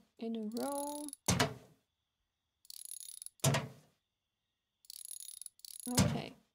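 A wrench ratchets quickly in short bursts.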